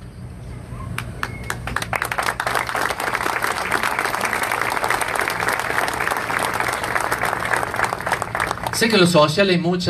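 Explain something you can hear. A crowd applauds outdoors.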